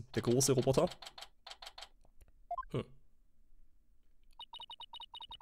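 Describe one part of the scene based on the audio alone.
Short electronic beeps tick in quick succession.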